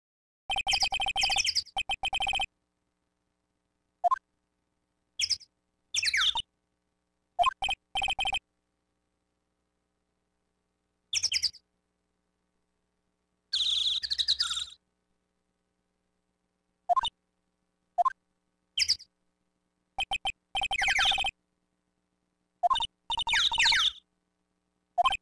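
Rapid electronic blips chirp in short bursts.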